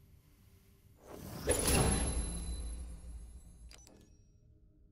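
A soft rushing whoosh swells and fades as a game menu changes.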